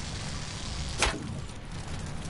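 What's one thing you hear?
A bow shot releases with a sharp whoosh.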